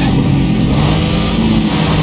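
Two cars scrape and bump against each other.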